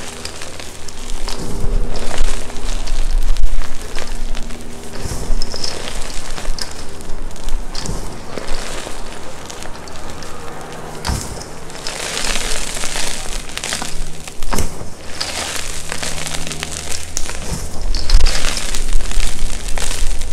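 Hands squeeze and crumble soft powder with a soft crunching.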